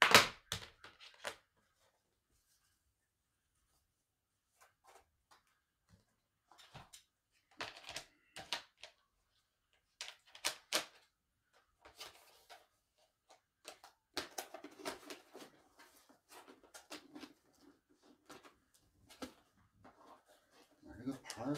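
Plastic and paper items rustle and clatter.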